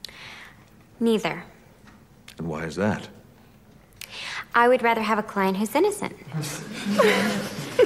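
A young woman speaks brightly and cheerfully.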